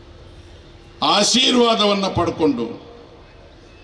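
An older man speaks forcefully into a microphone over loudspeakers, outdoors.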